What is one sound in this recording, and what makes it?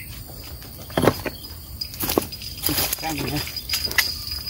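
A fishing reel clicks and whirs.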